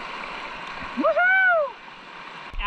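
A young man whoops with excitement.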